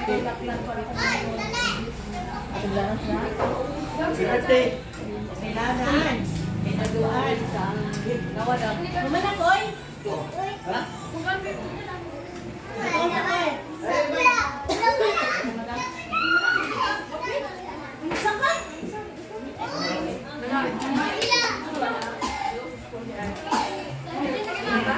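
Several people chat and talk over one another nearby.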